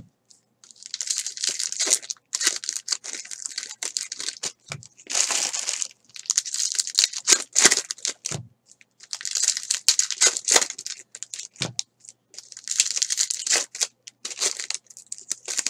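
Plastic wrappers crinkle and rustle close by as they are handled.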